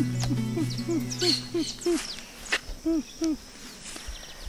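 A dog whines in short, high, repeated cries close by.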